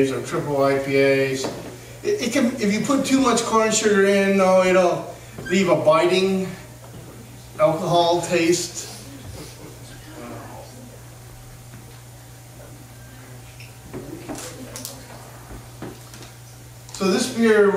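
A man speaks with animation to a room, his voice slightly echoing.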